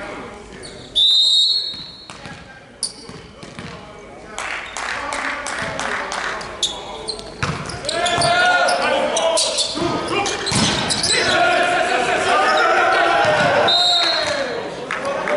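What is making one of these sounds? A referee's whistle blows sharply in a large echoing hall.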